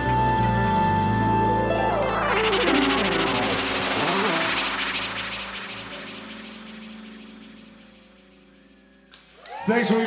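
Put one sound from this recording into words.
A live band plays loud music with drums and electric guitar, then slowly fades out.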